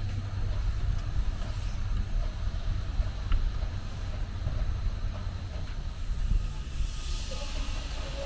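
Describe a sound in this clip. Sand pours and hisses out of a tipping trailer.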